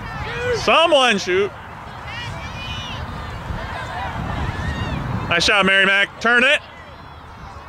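Adults close by shout and cheer loudly.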